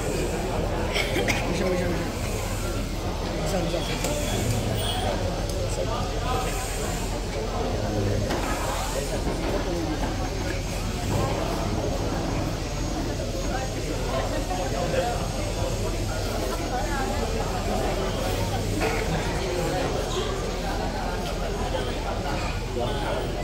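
A crowd of men and women chatter nearby.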